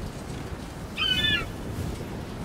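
A bird gives a short shrill cry.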